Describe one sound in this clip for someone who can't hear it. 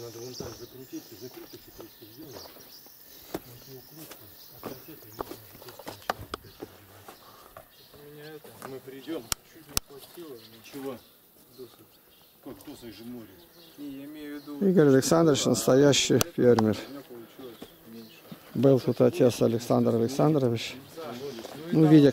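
Men talk with animation close by, outdoors.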